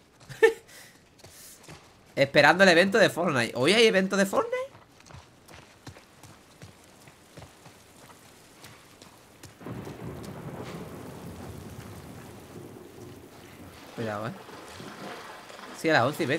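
Footsteps crunch on rubble and stone.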